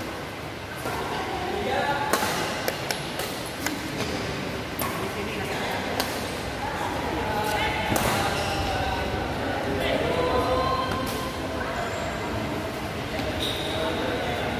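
Young players call out to each other in a large echoing hall.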